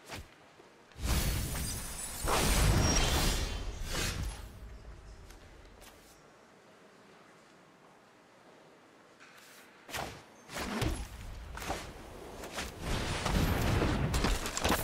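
Game sound effects whoosh and chime as cards are played.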